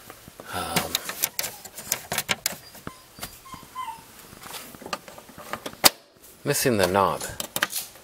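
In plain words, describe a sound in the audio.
Plastic clicks and taps sharply as a finger presses on a vent.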